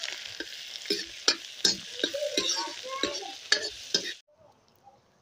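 A metal spoon scrapes against a pan.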